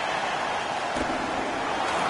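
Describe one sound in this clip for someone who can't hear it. A puck cracks sharply off a stick.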